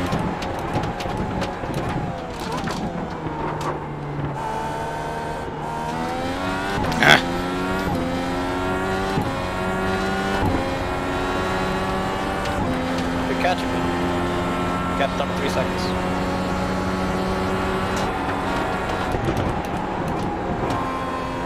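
A racing car engine roars, rising in pitch and dropping sharply with each gear change.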